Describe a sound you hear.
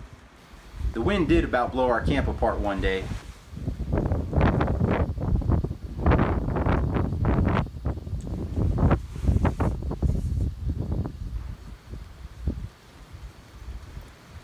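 A man talks from a short distance outdoors.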